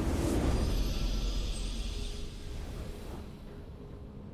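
A triumphant game fanfare rings out and fades away.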